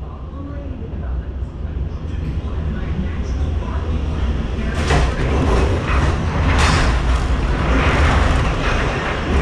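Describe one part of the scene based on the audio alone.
A ride car rumbles and clatters along its track.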